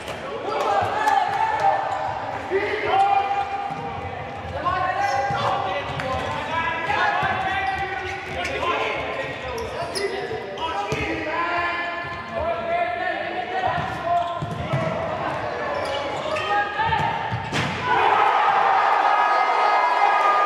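A ball thuds as players kick it in an echoing hall.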